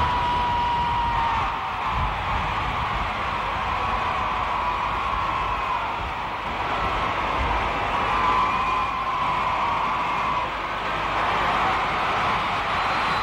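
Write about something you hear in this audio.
A huge crowd cheers and roars outdoors.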